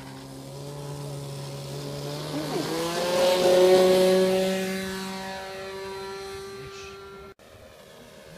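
A model plane's electric motor whines loudly as it races past close by on takeoff.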